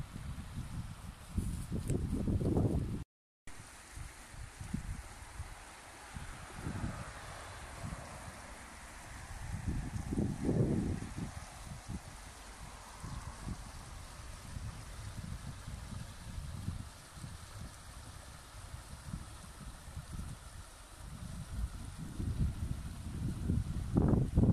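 A shallow stream babbles steadily over stones.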